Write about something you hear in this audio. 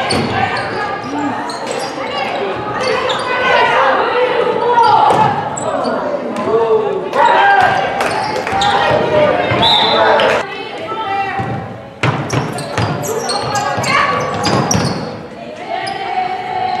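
A basketball bounces on the court with loud thuds.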